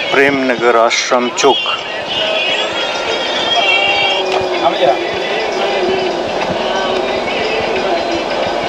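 A car engine hums steadily as it drives along a road.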